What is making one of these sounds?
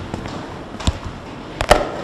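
A vinyl record is set down onto a turntable with a soft knock.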